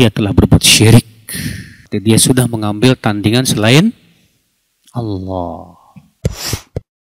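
A middle-aged man speaks with animation into a close microphone.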